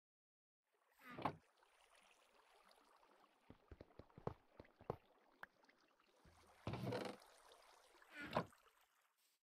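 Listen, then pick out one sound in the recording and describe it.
A wooden chest thuds shut.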